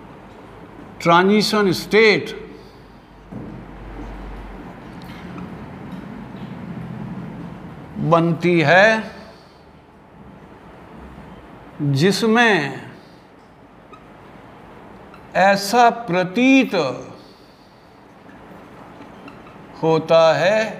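An elderly man speaks calmly in short bursts, close by.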